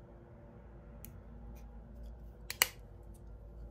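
Small hinged mirrors click and tap together close by.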